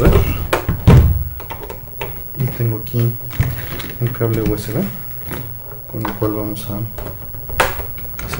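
Plastic knocks and clicks as hands handle a game console.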